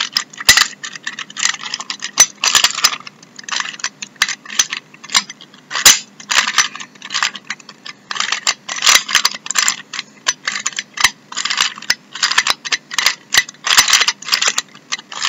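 A plastic puzzle cube clicks and rattles as its layers are turned quickly.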